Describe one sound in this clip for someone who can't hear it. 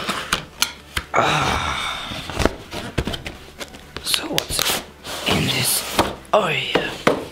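Cardboard flaps snap and thud.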